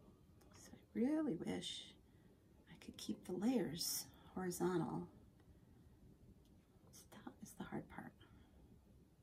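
A woman talks calmly close by.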